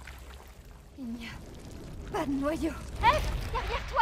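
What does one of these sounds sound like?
A young woman speaks quietly and breathlessly, close by.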